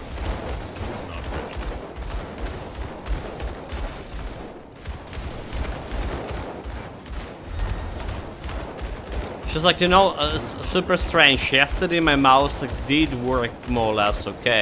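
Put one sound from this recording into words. Magic blasts crackle and thump in quick succession.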